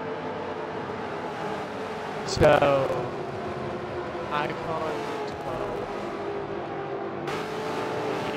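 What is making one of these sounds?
Race car engines drone steadily as cars speed in a pack.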